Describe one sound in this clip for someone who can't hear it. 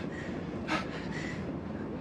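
A young woman gasps in distress.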